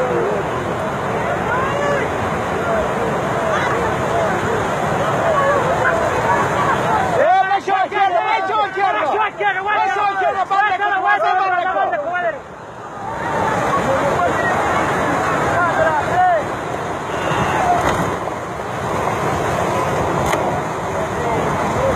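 Floodwater rushes and roars loudly.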